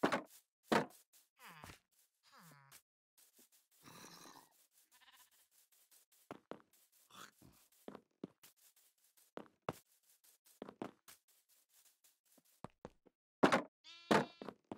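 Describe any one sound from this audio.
Footsteps tread over grass and gravel paths.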